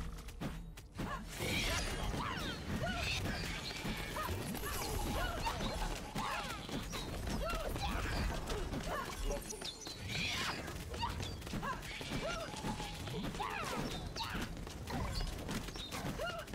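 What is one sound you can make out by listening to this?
Magic blasts, whooshes and hits crackle rapidly in a busy fight.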